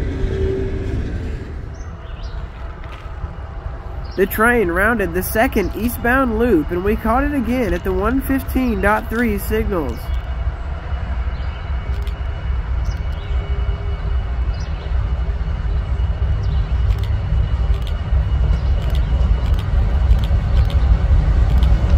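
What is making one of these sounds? A diesel locomotive rumbles as it approaches and grows louder.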